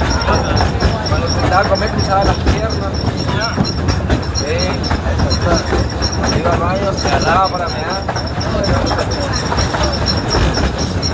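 Passengers chatter in lively voices close by.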